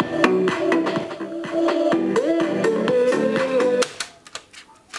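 Music plays from a cassette deck.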